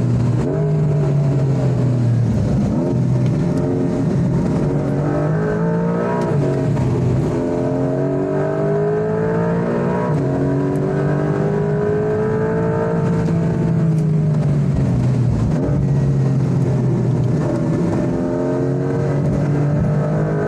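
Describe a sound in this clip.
Tyres hum on the road at speed.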